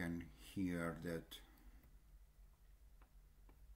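A computer mouse clicks once.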